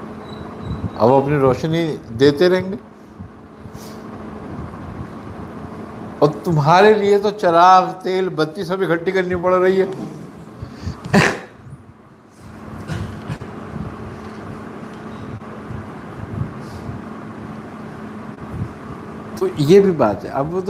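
An elderly man speaks calmly into a close microphone.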